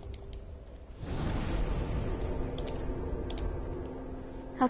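A deep rushing whoosh swells suddenly and slowly fades.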